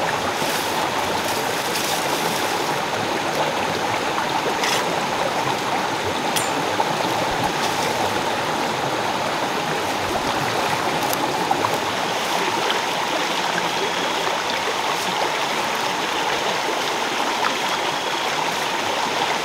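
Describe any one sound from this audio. Fern fronds rustle as a man pulls and gathers them.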